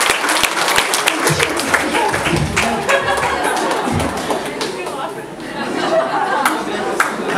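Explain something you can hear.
A crowd claps along in a large echoing hall.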